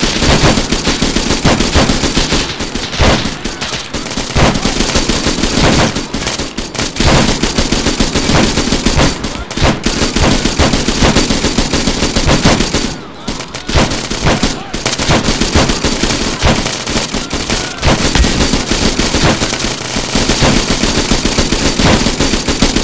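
A rifle fires rapid bursts of loud gunshots.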